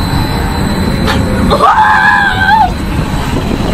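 A young boy laughs and shrieks excitedly close by.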